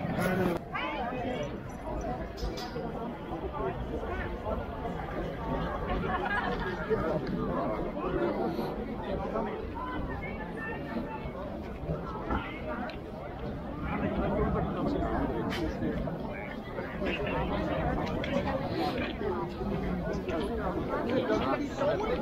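A crowd of men and women talks outdoors nearby.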